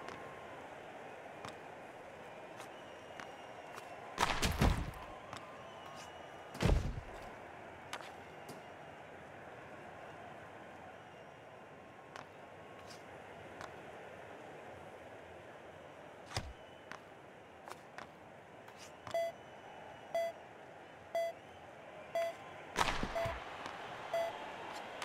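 Hockey sticks click sharply against a puck.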